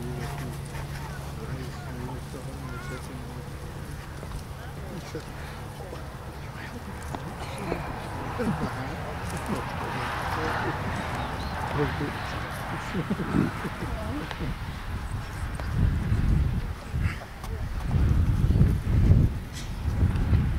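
A small crowd murmurs quietly outdoors.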